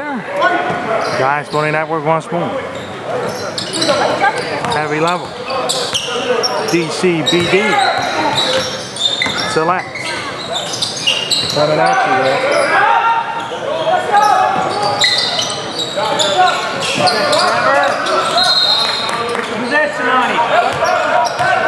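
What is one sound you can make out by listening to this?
Players and spectators shout and talk, echoing around the gym.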